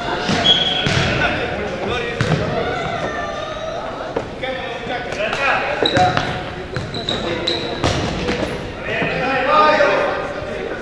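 Men shout and call to each other across an echoing hall.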